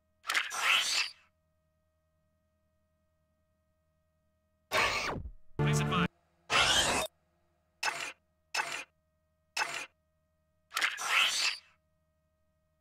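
A video game menu whooshes and chimes as it opens and turns.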